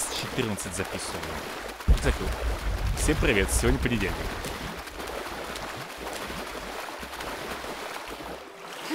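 Water splashes softly as a swimmer strokes through it.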